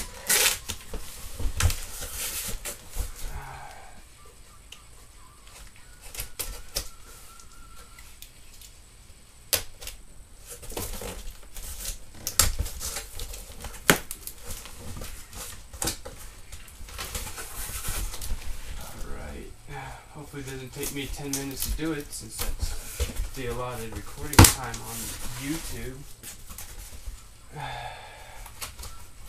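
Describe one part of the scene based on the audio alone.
Cardboard rustles and scrapes as a box is handled close by.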